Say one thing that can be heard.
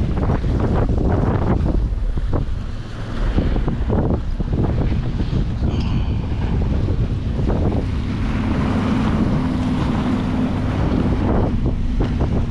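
Small waves splash against rocks.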